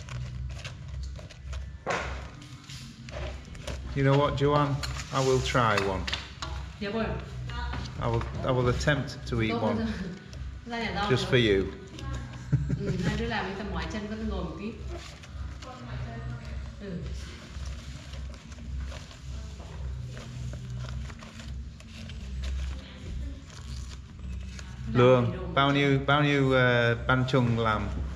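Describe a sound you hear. Stiff leaves rustle and crinkle as hands fold them.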